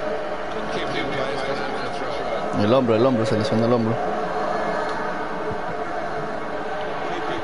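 A stadium crowd murmurs and cheers steadily in the background.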